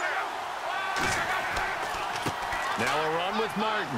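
Football players collide with thudding impacts.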